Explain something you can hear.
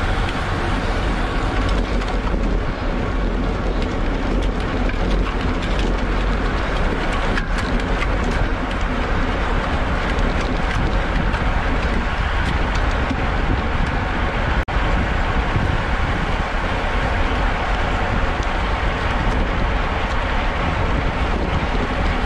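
Strong wind rushes and buffets loudly past.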